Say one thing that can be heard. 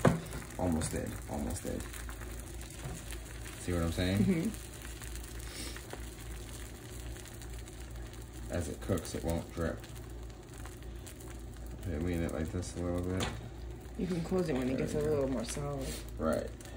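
Egg sizzles softly on a hot grill.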